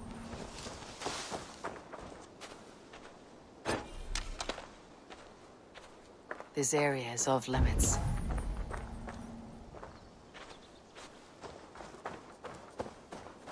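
Footsteps rustle through tall grass.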